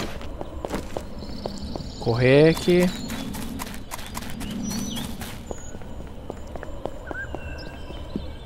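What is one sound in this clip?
Footsteps crunch steadily on gravel and grass.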